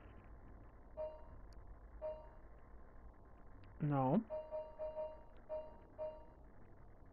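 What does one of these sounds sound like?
Short soft menu blips sound as a cursor moves across a game map.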